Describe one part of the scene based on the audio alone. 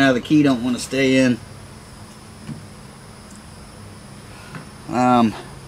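An older man talks calmly up close.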